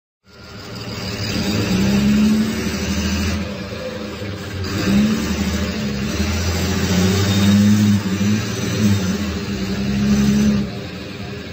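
A six-cylinder diesel bus engine runs.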